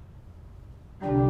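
A pipe organ begins to play loudly, echoing in a large hall.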